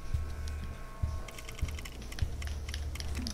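Soft game menu clicks sound as a selection cursor moves.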